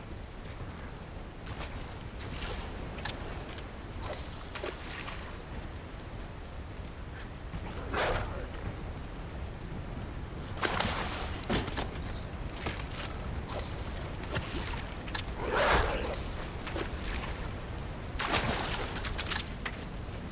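A fishing line whizzes out as it is cast.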